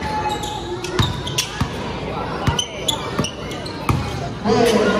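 A basketball bounces hard on a wooden court.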